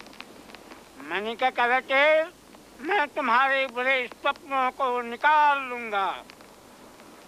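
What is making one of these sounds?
An elderly man chants loudly in a high, wavering voice.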